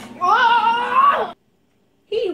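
A young boy shouts loudly nearby.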